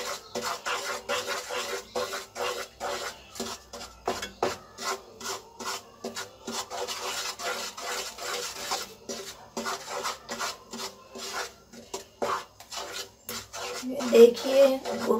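A wooden spoon scrapes and stirs thick sauce in a pan.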